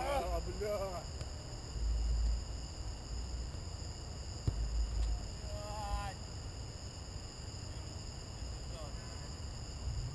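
Young players shout to each other from far across an open field.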